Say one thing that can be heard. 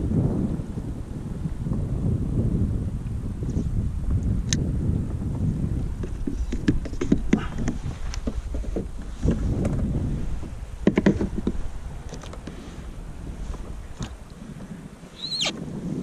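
Wind rushes over a microphone outdoors.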